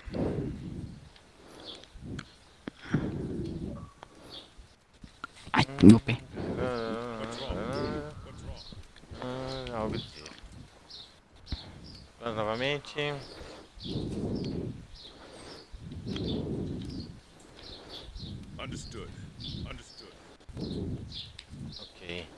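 A middle-aged man speaks calmly and warmly, close by.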